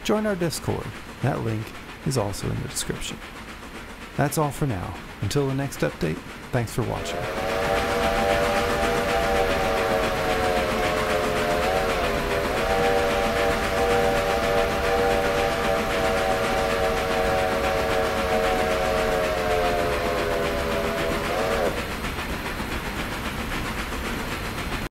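A steam locomotive rumbles and clatters along the tracks.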